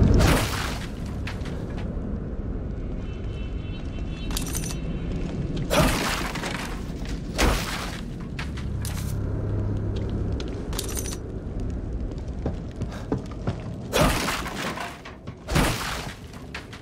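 Wooden crates smash and splinter.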